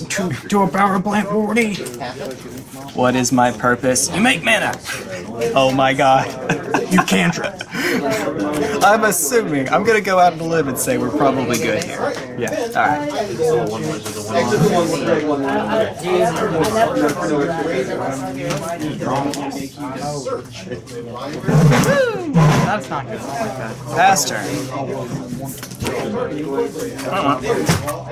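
Playing cards tap and slide softly on a table.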